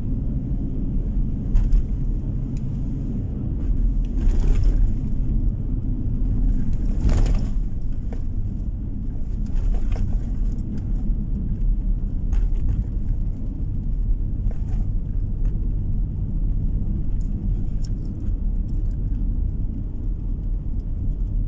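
A car drives steadily along a road with a low, constant rumble.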